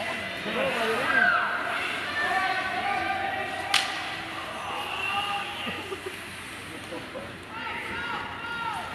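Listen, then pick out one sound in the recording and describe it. Young men shout and call to each other across the rink.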